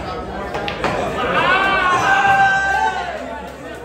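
A man shouts out excitedly.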